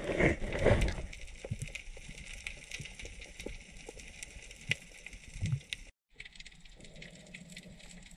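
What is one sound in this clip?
Underwater clicks and crackles sound all around.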